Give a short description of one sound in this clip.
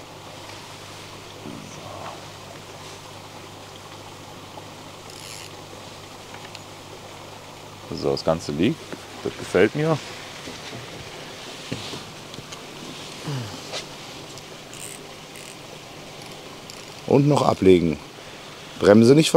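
A fishing reel clicks and whirs as the line is wound in.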